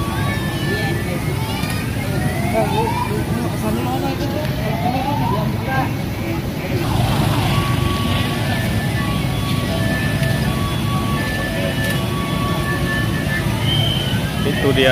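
Children's toy cars play tinkling electronic tunes.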